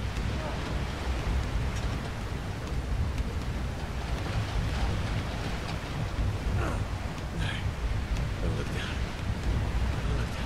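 Strong wind howls steadily.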